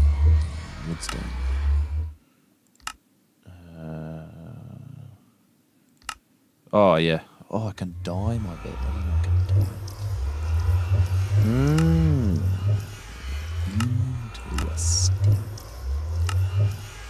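Short clicks sound now and then as menu tabs are switched.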